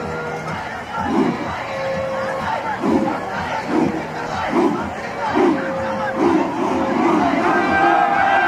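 A group of young men shout together in a rhythmic chant outdoors.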